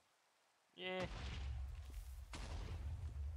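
A fuse fizzes and hisses.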